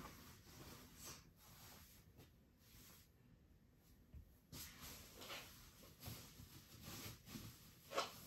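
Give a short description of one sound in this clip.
Bedding and clothing rustle as a person shifts on a bed.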